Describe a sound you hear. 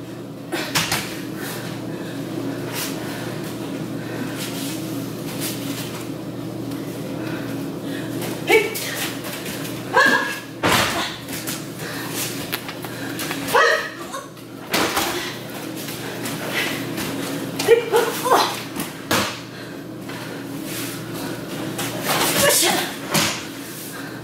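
Bodies thump onto a padded mat as people are thrown.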